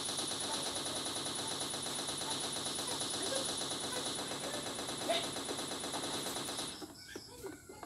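A machine gun fires in rapid automatic bursts in a video game.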